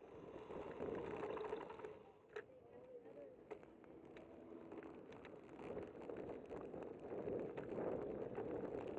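Bicycle tyres hum and rattle over pavement.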